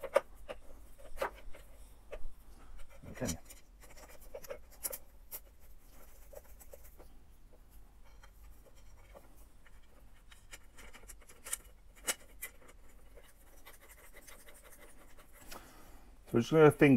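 Small metal parts click and rattle.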